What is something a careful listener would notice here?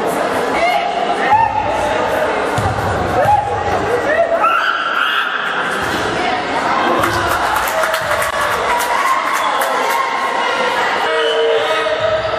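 Young players chatter and call out in an echoing hall.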